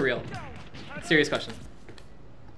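Video game punches and strikes crack sharply.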